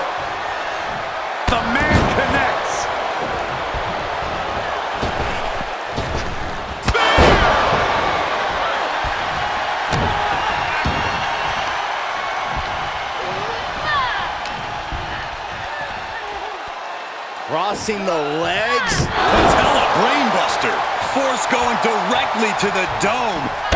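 A large crowd cheers and roars throughout.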